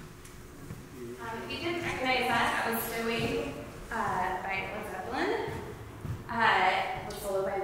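A woman speaks calmly, a little away from the listener.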